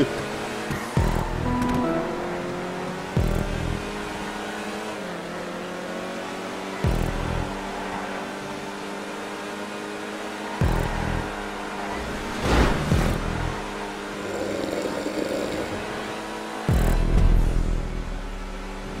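A sports car engine roars steadily at high revs.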